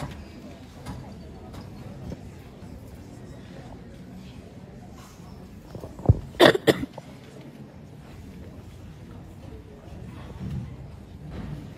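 A seated audience murmurs quietly in a large hall.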